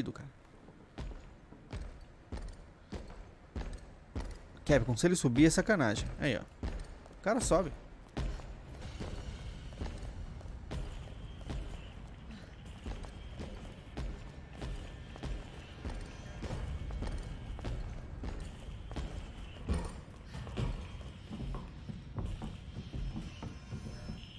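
Footsteps thud steadily on hard floor and stairs.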